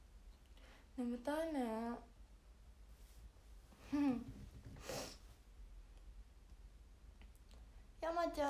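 A young woman speaks softly and playfully, close to a microphone.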